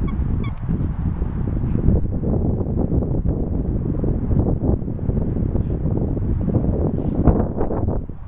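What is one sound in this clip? A dog rolls and wriggles on its back in the grass, rustling it.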